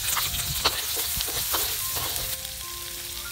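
A wooden spatula scrapes and knocks against a wok.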